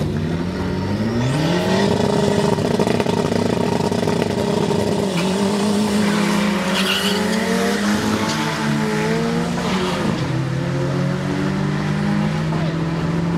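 Two race cars roar off at full throttle, their engines rising in pitch.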